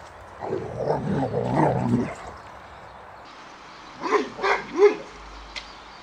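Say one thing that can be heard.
A dog barks loudly nearby.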